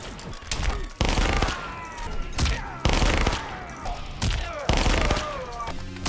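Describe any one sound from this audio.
Gunshots bang loudly in short bursts.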